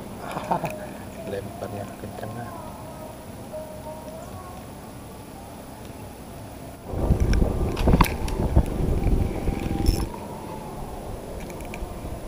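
A fishing reel whirs and clicks as its handle is turned.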